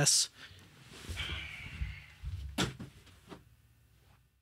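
Clothing and cardboard rustle as a man gets up from a chair.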